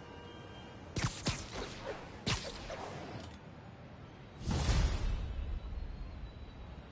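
Wind rushes past in a strong whoosh during a fast swing through the air.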